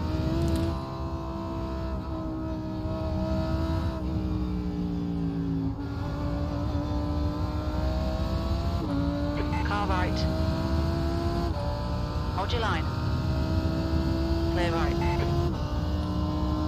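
A racing car engine roars and climbs in pitch through the gears.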